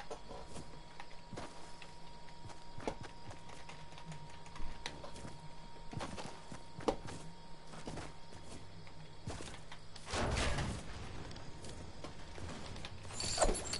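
Short clicks and thuds from building and footsteps come in quick bursts.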